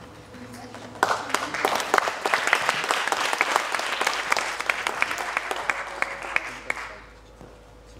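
An audience claps and cheers loudly.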